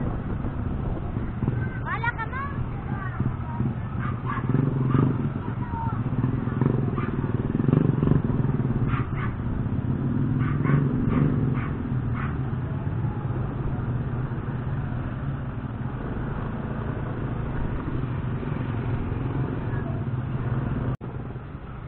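A tricycle taxi's engine putters nearby.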